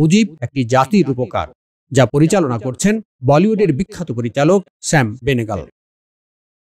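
An elderly man speaks calmly and clearly.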